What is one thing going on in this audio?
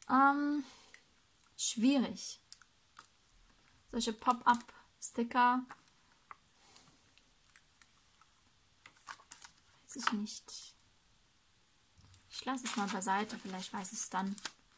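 Paper sheets rustle and crinkle as hands shuffle through them.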